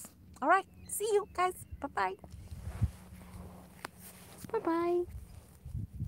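A middle-aged woman speaks with animation close to the microphone.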